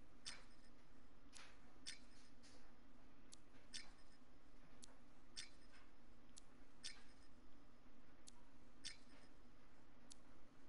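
Short menu clicks tick at an even pace.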